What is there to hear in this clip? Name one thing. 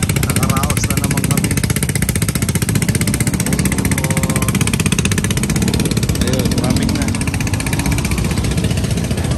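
A motorcycle engine idles close by with a fast, steady putter.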